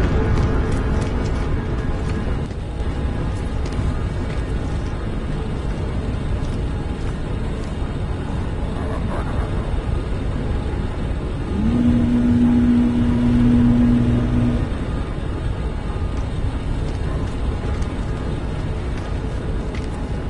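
A deep mechanical hum drones steadily.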